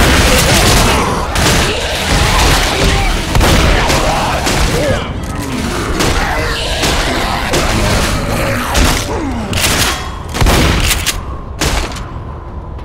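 Gunshots blast in rapid bursts.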